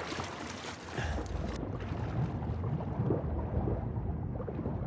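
Water rumbles deep and muffled, as if heard from underwater.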